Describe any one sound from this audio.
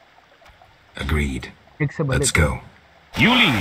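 A man with a deep, low voice answers briefly.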